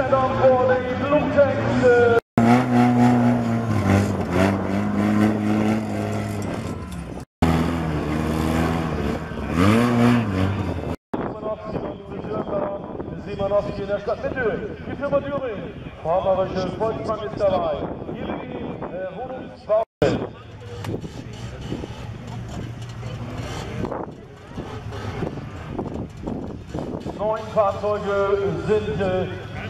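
Car engines roar and rev nearby.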